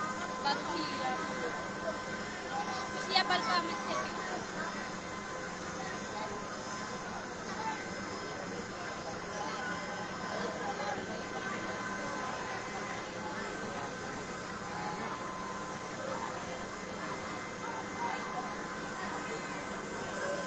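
A large crowd murmurs and shouts outdoors, heard from a distance.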